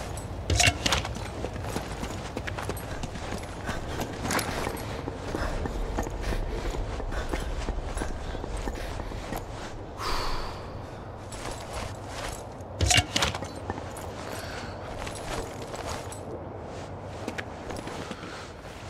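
Footsteps scuff quietly on a hard floor.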